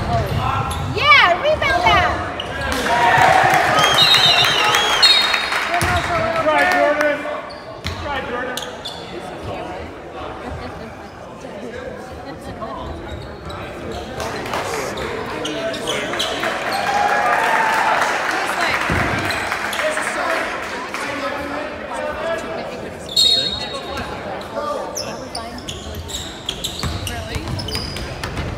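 Basketball sneakers squeak on a hardwood court in an echoing gym.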